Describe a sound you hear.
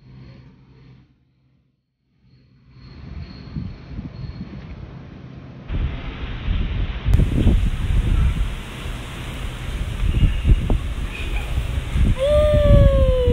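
Swing chains creak as children swing back and forth.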